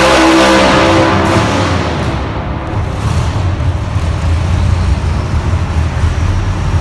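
A truck engine drops to a low rumbling idle.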